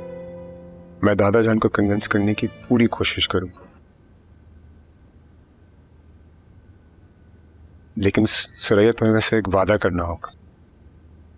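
A man speaks quietly and earnestly, close by.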